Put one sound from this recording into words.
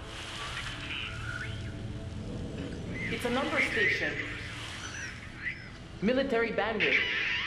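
A radio whistles and warbles as its dial is tuned.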